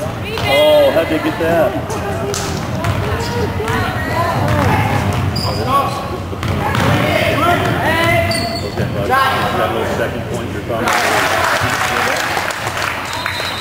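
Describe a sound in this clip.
Spectators shout and cheer in a large echoing gym.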